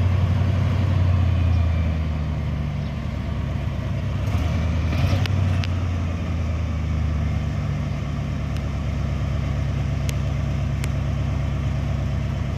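An old truck engine idles with a low, steady rumble.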